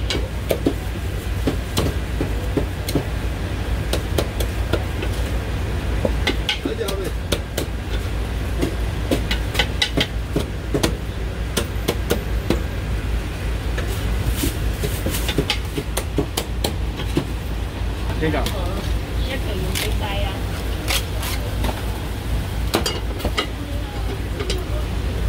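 A cleaver chops sharply and repeatedly on a wooden block.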